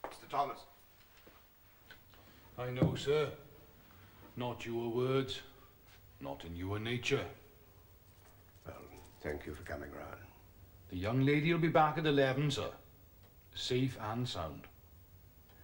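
An elderly man speaks in a low, calm voice nearby.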